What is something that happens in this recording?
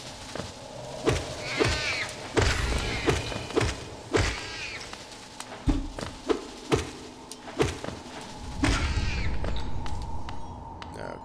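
A blade slashes and strikes with sharp, quick hits.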